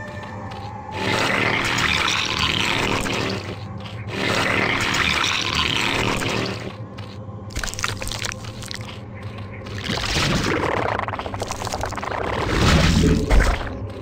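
Alien creatures gurgle and screech in bursts.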